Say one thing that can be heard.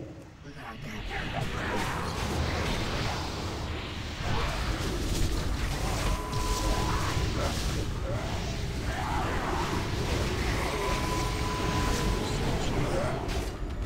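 Magic blasts and weapon clashes crackle and boom in a busy fight.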